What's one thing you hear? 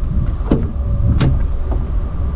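A van door latch clicks open.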